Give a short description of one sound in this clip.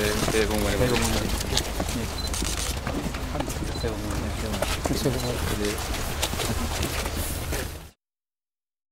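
A man speaks briefly in greeting amid a murmuring outdoor crowd.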